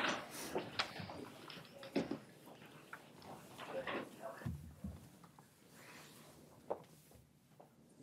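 Chairs shift and creak as people stand up and leave.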